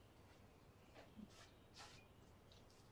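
Loose fabric rustles as a woman moves abruptly.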